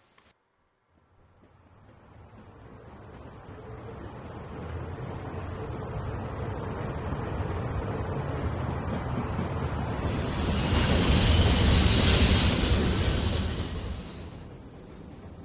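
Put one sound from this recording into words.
A train rumbles along the rails, growing louder as it nears and passes close by, then falls away.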